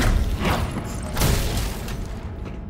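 A wooden crate smashes apart.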